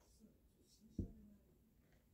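A glass knocks down onto a table.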